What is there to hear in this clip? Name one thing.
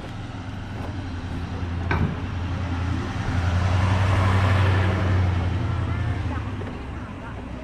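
A truck engine rumbles as it drives past close by.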